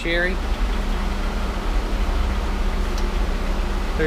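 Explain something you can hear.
A metal part clinks against an engine part.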